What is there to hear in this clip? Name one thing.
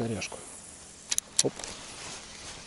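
A fishing reel clicks and whirs as its handle turns.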